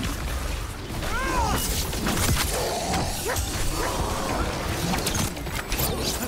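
Magic blasts crackle and whoosh.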